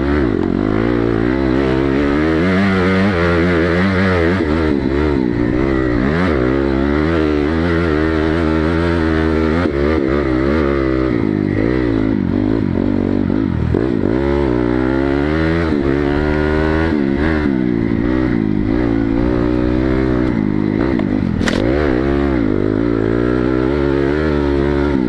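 Tyres crunch over dirt and loose stones.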